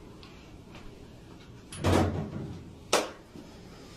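Objects clatter as they are set down on a table.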